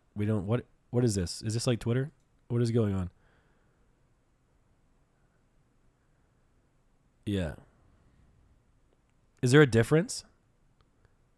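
A man speaks into a close microphone in short bursts, with animation.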